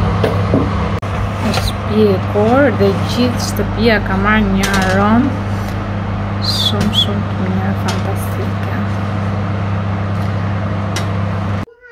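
A metal pan scrapes and clanks on an oven rack.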